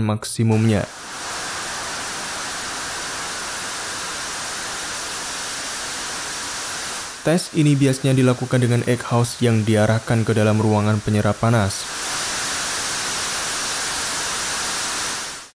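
A jet engine roars steadily with a loud rushing hiss.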